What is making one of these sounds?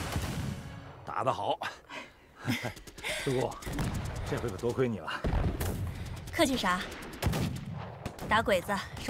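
A young woman talks cheerfully and laughs.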